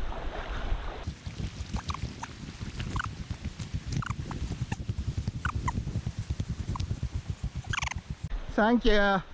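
Tyres rattle and crunch over loose stones.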